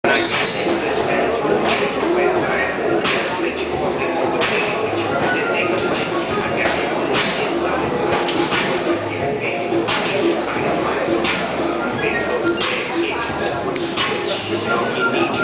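A crowd of people chatters loudly in an echoing hall.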